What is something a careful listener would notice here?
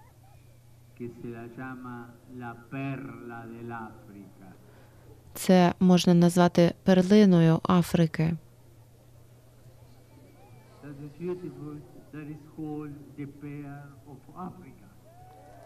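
An elderly man speaks calmly through a microphone and loudspeakers outdoors.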